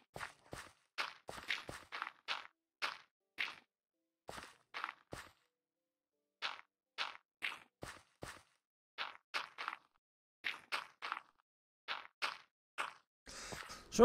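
Footsteps crunch on dirt in an even rhythm.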